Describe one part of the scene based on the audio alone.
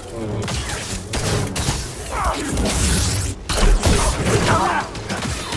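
A lightsaber hums and swooshes through the air.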